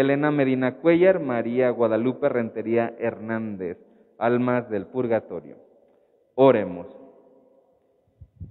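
A man chants into a microphone in a large echoing hall.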